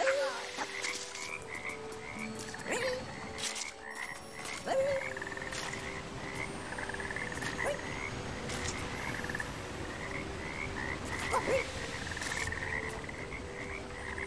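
Water splashes softly as a small figure swims.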